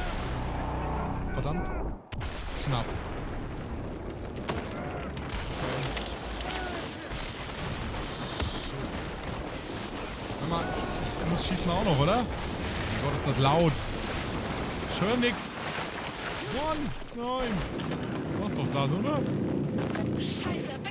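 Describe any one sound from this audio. Concrete crumbles and debris crashes down with a deep rumble.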